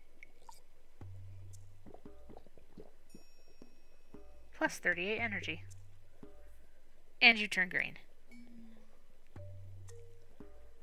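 A cauldron bubbles softly.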